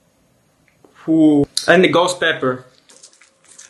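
Scissors snip through a crunchy candy.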